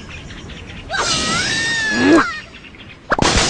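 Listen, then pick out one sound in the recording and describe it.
A bird squawks as it is flung through the air.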